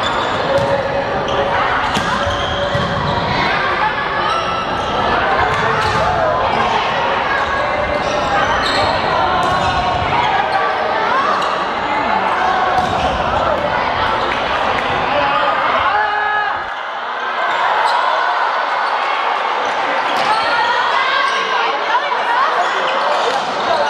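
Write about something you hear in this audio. A crowd of young people chatters and cheers in a large echoing hall.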